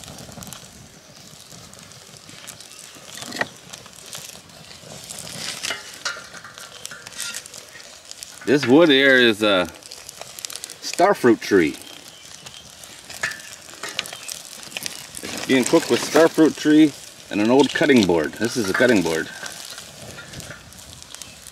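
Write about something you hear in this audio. A charcoal fire crackles softly.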